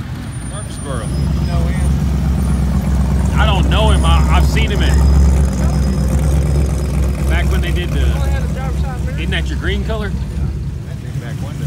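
A truck engine revs loudly with a deep rumble.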